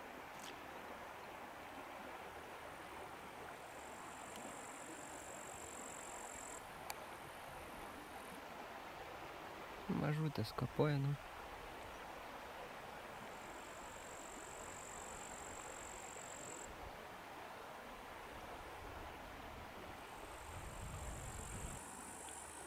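Wind rustles through distant trees.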